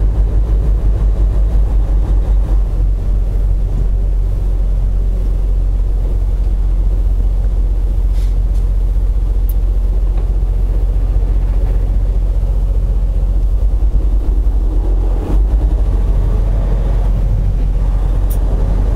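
Tyres hum on a snowy road.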